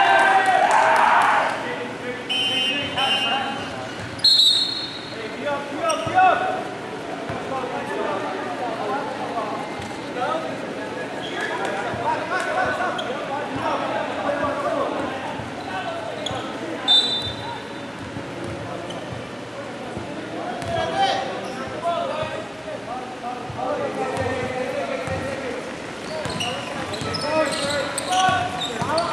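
Young men talk and call out across a large echoing gym.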